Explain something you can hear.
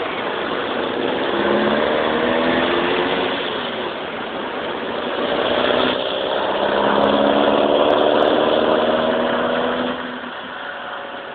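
A small car engine revs up and accelerates close by.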